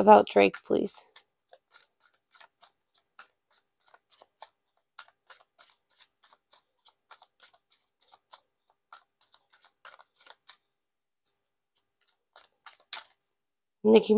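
Cards shuffle and riffle softly.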